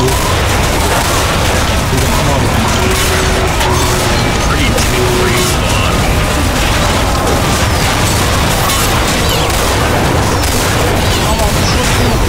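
A rifle fires rapid, loud shots.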